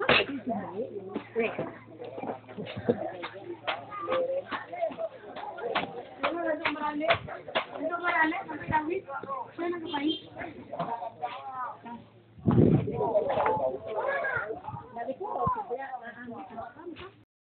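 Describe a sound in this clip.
A crowd of men and women chat at once close by.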